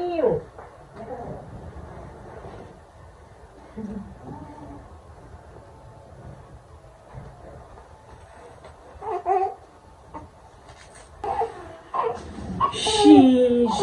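A newborn baby cries loudly in short bursts close by.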